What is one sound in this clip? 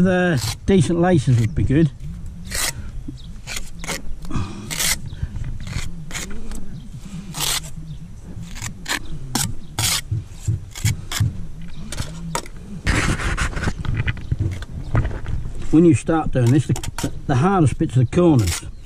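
A trowel scrapes and taps against mortar and brick.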